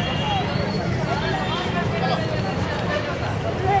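An auto-rickshaw engine rattles past.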